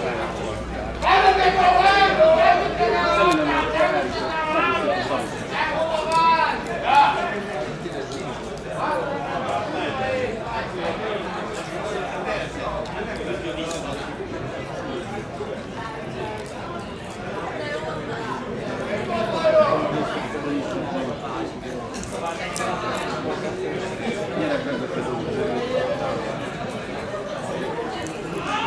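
Young men talk and call out at a distance outdoors.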